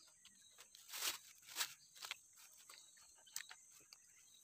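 A fishing reel clicks as the line is wound in.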